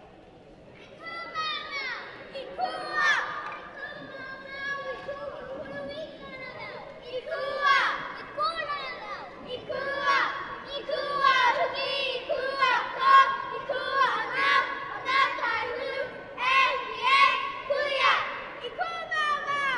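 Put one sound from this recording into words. A crowd of children and adults chatters and calls out in a large echoing hall.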